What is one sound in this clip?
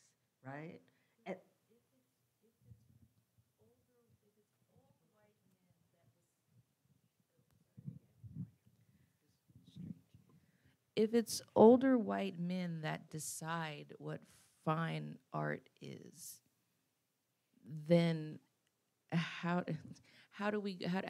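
A middle-aged woman speaks calmly into a microphone, close by.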